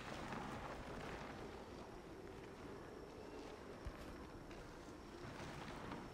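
A heavy truck rolls slowly with a low rumble.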